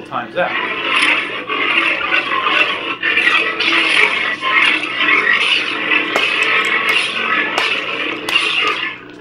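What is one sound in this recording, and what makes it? A toy lightsaber hums steadily.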